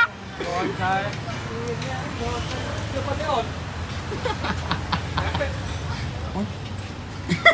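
Motorbikes pass by on a street.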